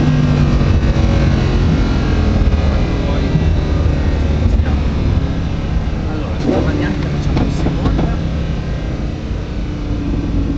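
A car engine's pitch drops as the car slows down.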